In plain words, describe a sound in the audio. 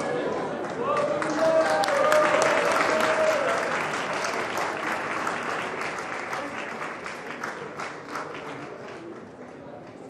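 A crowd claps and cheers.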